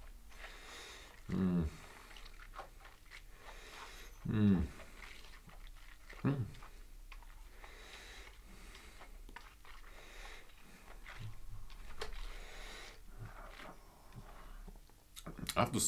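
A young man sniffs deeply, close to the microphone.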